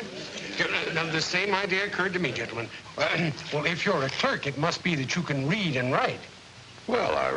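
A middle-aged man speaks calmly and slowly.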